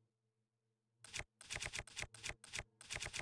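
Short soft clicks tick as menu items scroll past.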